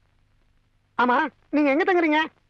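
A man speaks loudly and with animation, close by.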